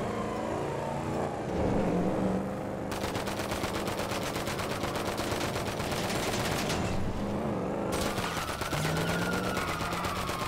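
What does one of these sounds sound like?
A car engine hums and revs while driving.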